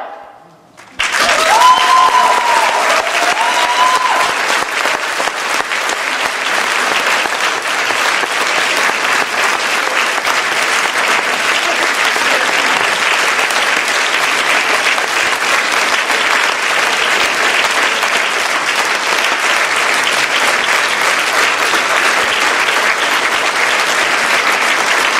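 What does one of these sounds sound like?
A women's choir sings close by.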